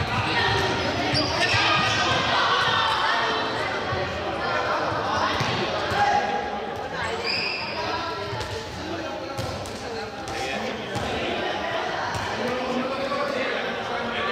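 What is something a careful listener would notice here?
Young people shout and talk over each other in a large echoing hall.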